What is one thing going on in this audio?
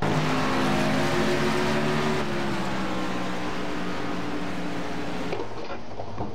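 A race car engine roars at high revs and slowly drops in pitch.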